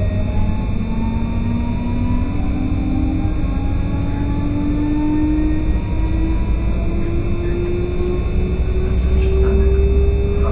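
A train's electric motor whines, rising in pitch as the train speeds up.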